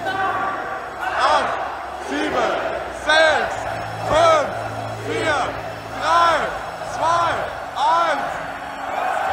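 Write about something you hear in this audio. A stadium crowd chants in loud, even, rhythmic shouts.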